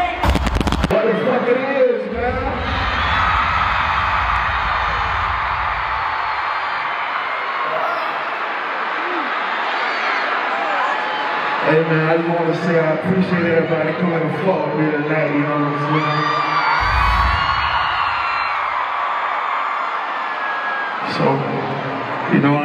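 A singer sings into a microphone, loud and echoing through a large arena.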